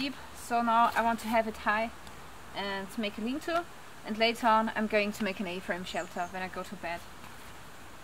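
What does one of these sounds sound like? A young woman talks calmly and cheerfully close by.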